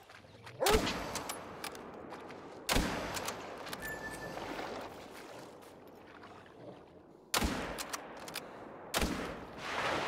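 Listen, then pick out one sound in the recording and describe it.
Shotgun blasts ring out loudly and echo.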